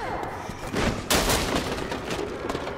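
A metal locker bursts apart with a loud crash.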